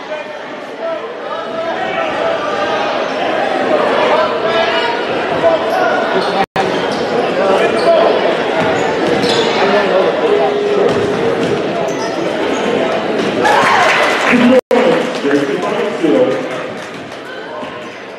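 Sneakers squeak on a hardwood floor.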